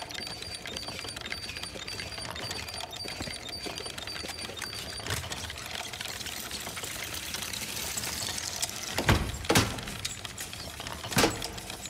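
Small plastic wheels of a toy tricycle roll and rattle across a hard floor.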